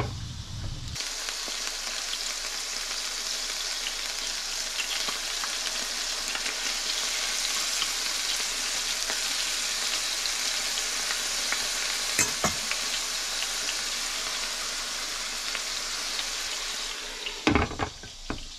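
Chicken sizzles and crackles in hot oil in a pan.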